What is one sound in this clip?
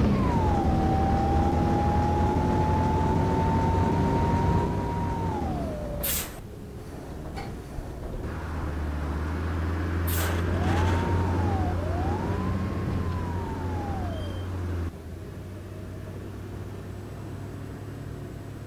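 A bus engine hums and drones.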